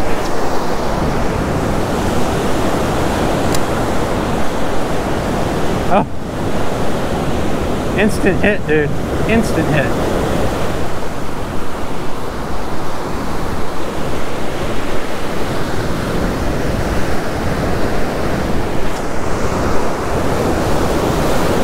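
Wind blusters against the microphone.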